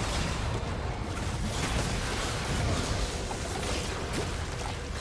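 Spell effects crackle and burst in a busy video game fight.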